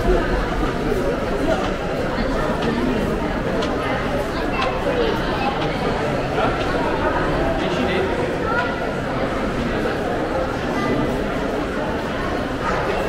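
A crowd of shoppers murmurs and chatters in a large echoing hall.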